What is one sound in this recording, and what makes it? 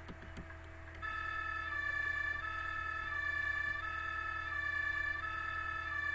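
A two-tone emergency siren wails.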